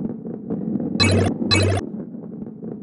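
Two bright chimes ring out as coins are collected.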